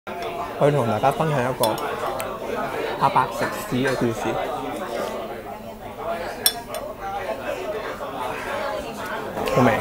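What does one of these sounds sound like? A young man talks animatedly, close to the microphone.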